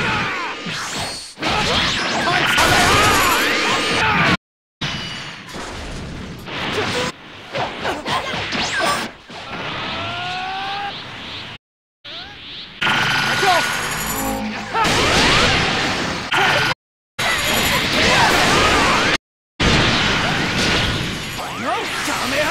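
Heavy blows and explosions crash and boom.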